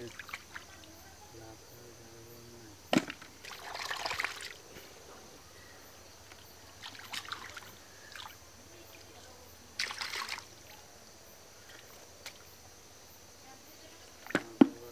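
Hands squelch and splash in wet mud.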